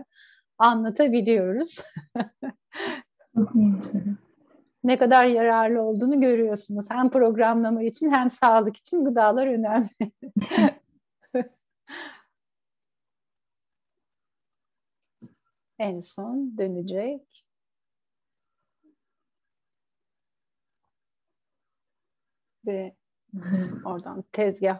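A woman speaks calmly through an online call, with pauses.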